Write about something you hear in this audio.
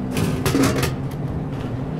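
A vending machine clunks as a can drops out.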